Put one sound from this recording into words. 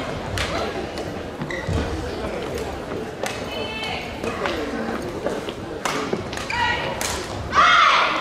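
Rackets strike a shuttlecock back and forth in a quick rally.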